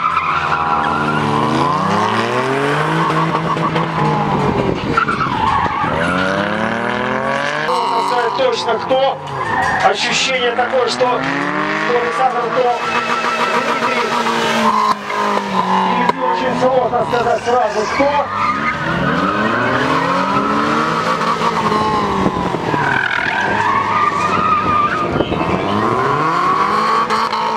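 A car engine revs hard, rising and falling sharply again and again.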